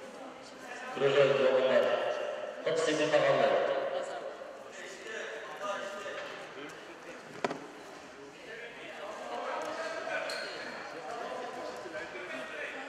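Young men talk and shout in a large echoing hall.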